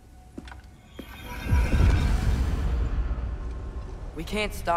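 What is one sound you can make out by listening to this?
A deep magical whoosh swells loudly and slowly fades.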